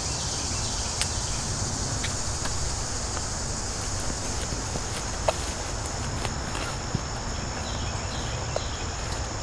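Metal climbing gear clinks and clicks against a tree trunk.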